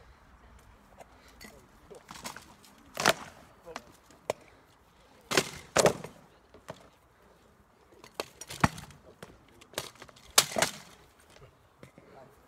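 Swords clash against shields and armour in sharp, irregular blows.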